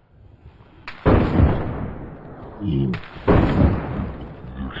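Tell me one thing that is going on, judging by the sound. Gunshots bang loudly in a small room.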